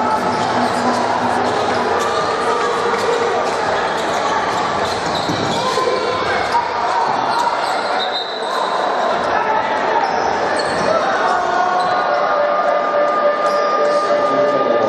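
A large crowd cheers and chatters in a big echoing hall.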